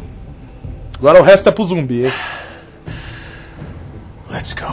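A man speaks in a low, weary voice.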